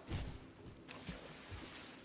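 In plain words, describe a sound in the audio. Water sprays and splashes from a fountain.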